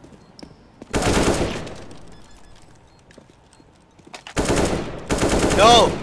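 Rifle shots ring out in loud bursts.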